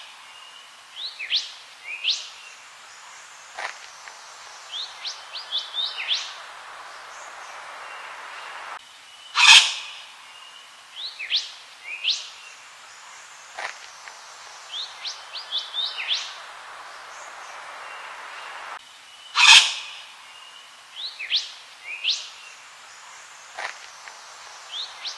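A bird calls with sharp, rising squawks and chirps.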